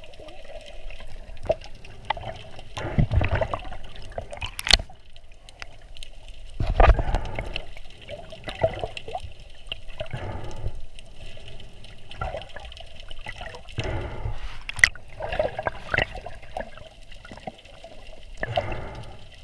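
Water sloshes and gurgles in muffled bursts, as if heard underwater.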